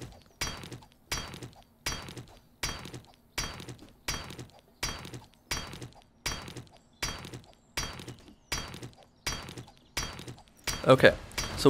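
A wrench clanks repeatedly against car metal in a steady rhythm.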